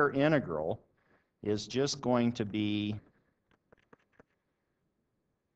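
A stylus taps and scratches on a tablet as it writes.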